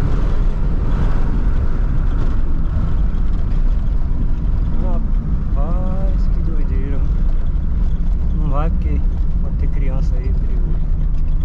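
Tyres roll over the road with a low roar.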